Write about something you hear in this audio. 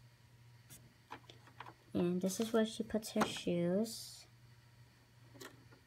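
Small plastic toy pieces tap and click as a hand handles them.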